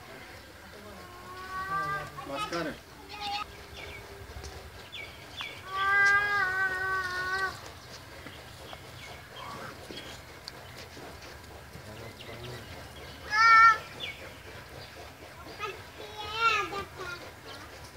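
A buffalo calf bleats loudly several times, close by.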